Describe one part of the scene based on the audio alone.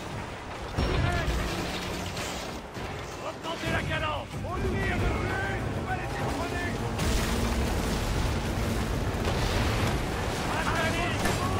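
A crowd of men shouts and cheers loudly.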